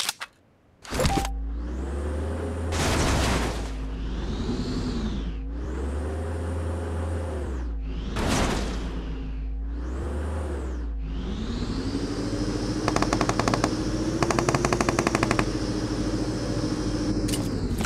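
A small car engine starts and revs up and down repeatedly.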